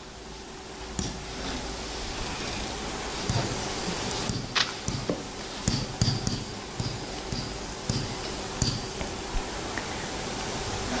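A pen squeaks and taps on a board.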